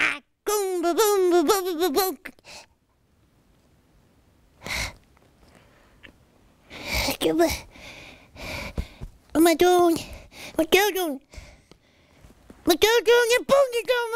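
A man babbles and coos in a high, baby-like voice.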